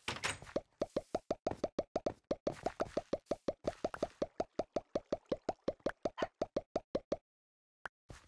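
Rapid tapping sounds from a video game as blocks are hit.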